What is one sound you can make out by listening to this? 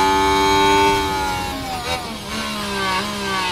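A racing car engine drops in pitch as it slows down for a corner.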